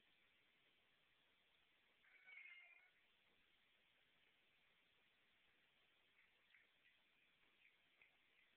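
A cat's paws rustle on a cloth mat.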